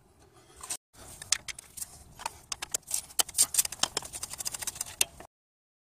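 A metal screwdriver taps and scrapes against engine metal.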